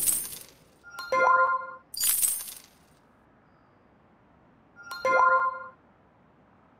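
Short bright game menu chimes ring out.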